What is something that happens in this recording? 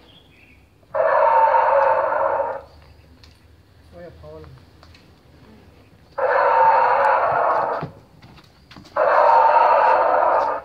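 A dinosaur costume lets out loud, harsh roars in bursts.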